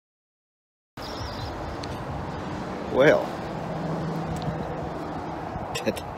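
A middle-aged man speaks calmly close to the microphone.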